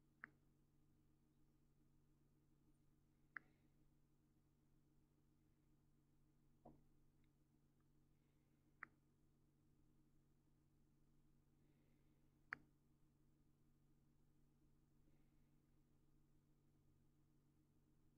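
Liquid swirls gently in a glass flask.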